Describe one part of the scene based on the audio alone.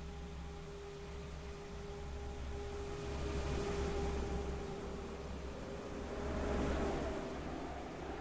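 A train hums and rumbles steadily as it moves slowly past.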